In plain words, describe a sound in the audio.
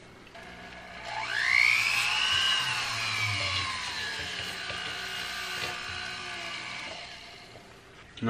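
A small rotary tool whirs at high speed, rising in pitch as it spins up and then slowly settling.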